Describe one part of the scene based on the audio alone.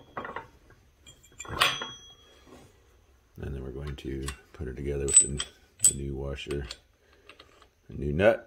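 Metal parts clink softly as they are handled.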